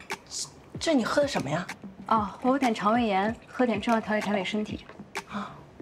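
A young woman asks a question with surprise, up close.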